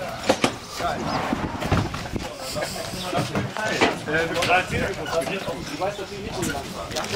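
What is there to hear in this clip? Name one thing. Several men talk casually outdoors.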